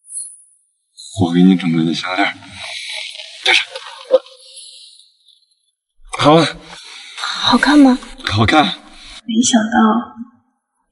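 A young man speaks cheerfully and playfully up close.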